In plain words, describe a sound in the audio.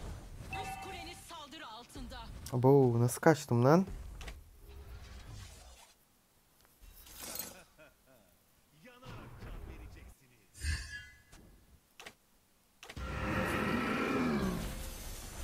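Magic attacks burst and whoosh in a fight.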